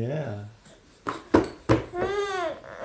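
A baby claps its hands.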